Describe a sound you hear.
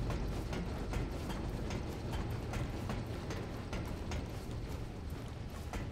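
Footsteps clang on a metal grating.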